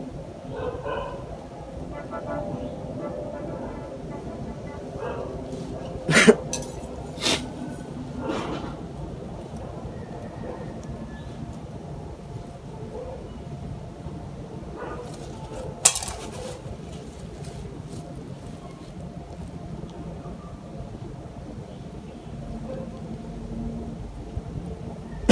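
Fingers scrape and rustle through dry soil and roots.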